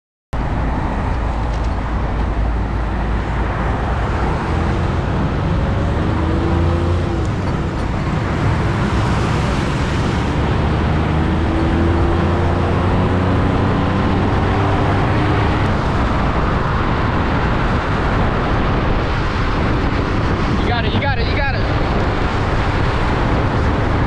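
Wind rushes loudly past, outdoors while riding along a road.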